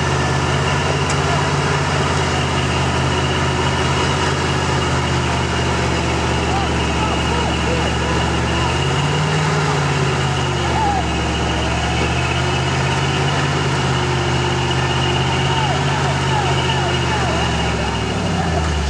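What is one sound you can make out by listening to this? An off-road truck's engine rumbles low and steady, revving up now and then.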